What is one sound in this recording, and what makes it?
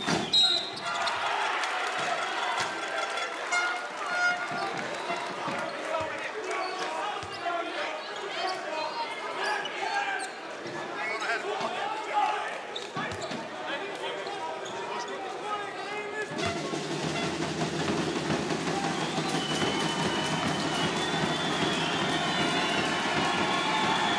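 A large crowd murmurs and cheers in an echoing hall.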